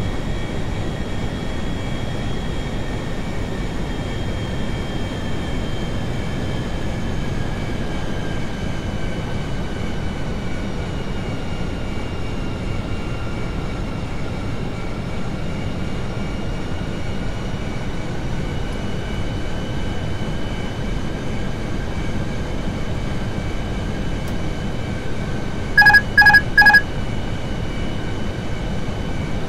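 Jet engines roar and whine steadily.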